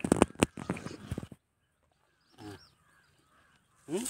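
A cow snuffles and breathes close by.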